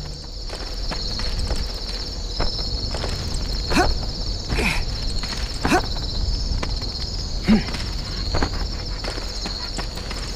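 Quick footsteps crunch steadily on snow.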